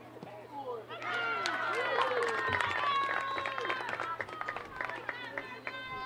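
Young women cheer and shout excitedly outdoors.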